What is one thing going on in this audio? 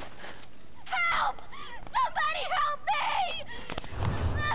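A young woman cries out for help in distress.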